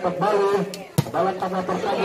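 A volleyball is struck hard with a slap.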